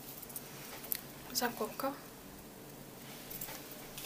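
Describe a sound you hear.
A ribbon rustles softly between fingers.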